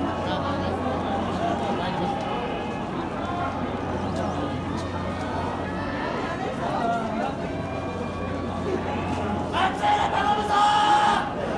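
A crowd of spectators chatters and murmurs nearby outdoors.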